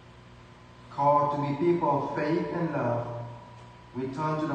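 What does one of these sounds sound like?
A woman reads aloud into a microphone.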